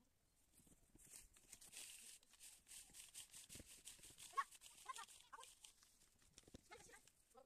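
A garden rake scrapes and rustles through dry plant stalks.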